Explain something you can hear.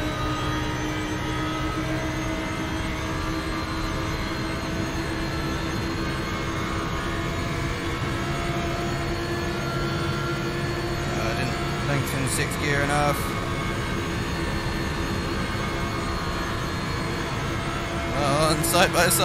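A racing car engine roars steadily at high revs.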